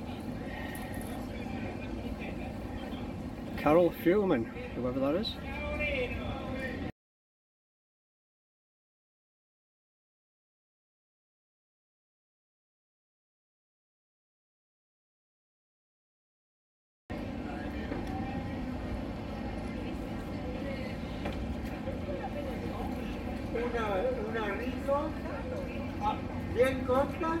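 Street ambience murmurs in an outdoor square.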